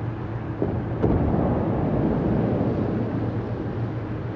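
Heavy naval guns fire with a deep boom that rumbles away.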